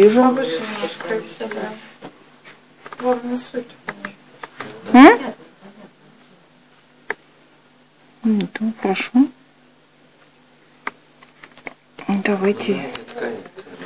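A woman speaks calmly, with pauses.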